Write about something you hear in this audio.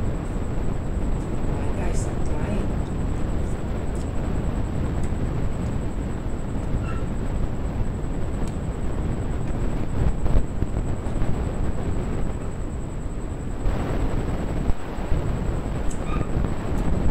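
A metal spoon and fork clink against a ceramic plate.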